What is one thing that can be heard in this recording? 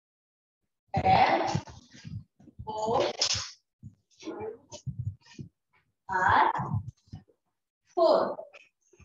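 A young woman speaks clearly in short phrases, with pauses between them.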